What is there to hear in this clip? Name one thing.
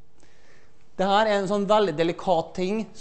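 A man lectures loudly in a large echoing hall.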